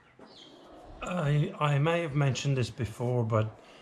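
A middle-aged man talks calmly, close to a microphone.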